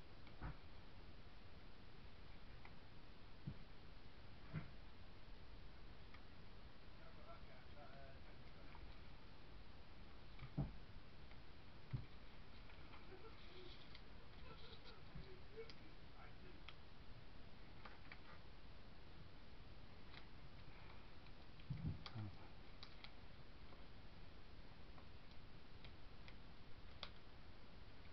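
Small plastic pieces click and tap against a hard surface.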